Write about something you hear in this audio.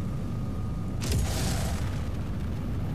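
A large gun fires with a loud boom.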